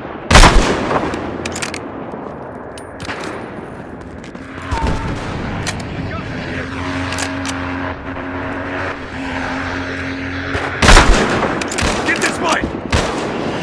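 Gunfire and explosions rumble in the distance.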